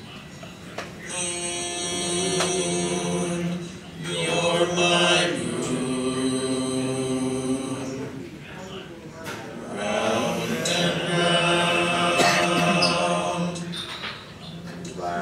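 Electronic music with long sustained tones plays through loudspeakers.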